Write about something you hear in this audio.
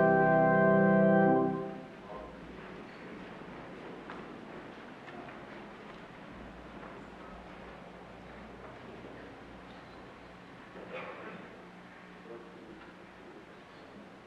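A man speaks softly in an echoing hall.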